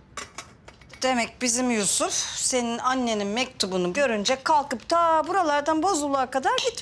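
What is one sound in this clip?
A middle-aged woman speaks with animation nearby.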